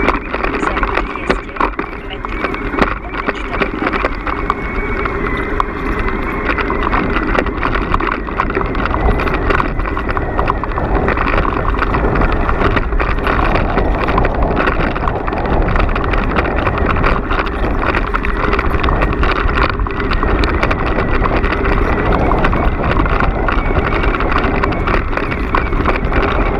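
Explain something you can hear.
Bicycle tyres crunch and rattle over a dirt and gravel track.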